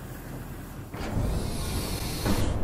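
Heavy metal doors grind and rumble shut.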